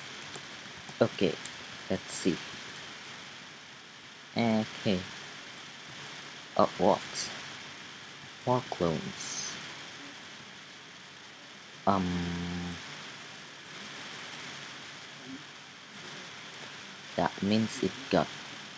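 A cartoon game plays short tooting sound effects.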